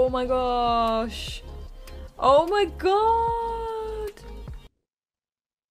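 A young woman speaks into a microphone with animation.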